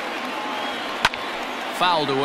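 A baseball smacks sharply into a catcher's mitt.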